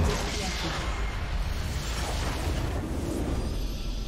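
Spell effects whoosh and crackle in a video game battle.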